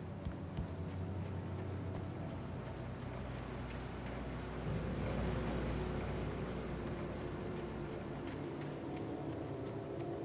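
Footsteps crunch quickly over gravel and leaves.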